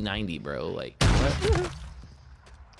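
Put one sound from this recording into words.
A shotgun fires a single loud blast.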